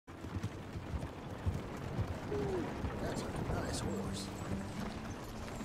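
Wooden wagon wheels creak and rattle along.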